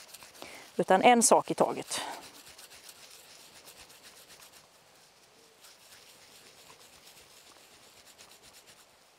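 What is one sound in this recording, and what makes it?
Hands rub together softly.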